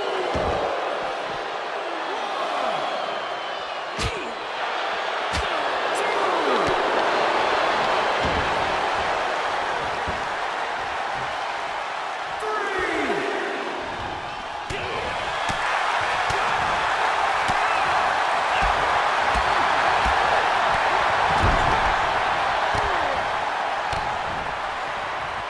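A large crowd roars and cheers steadily throughout.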